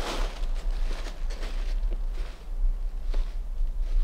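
Footsteps crunch through dry leaves and snapping twigs.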